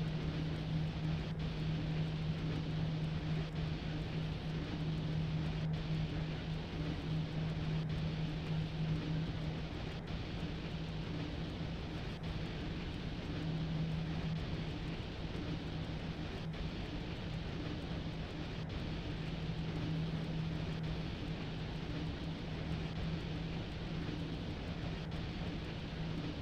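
An electric locomotive hums steadily as it runs.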